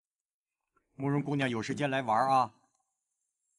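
A middle-aged man speaks calmly and politely.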